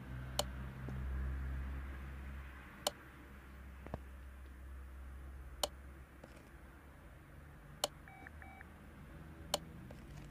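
Car parts snap into place with sharp clicks.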